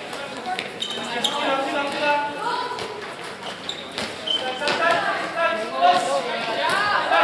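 Young women call out to each other across a large echoing hall.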